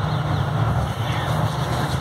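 Hands rub together softly.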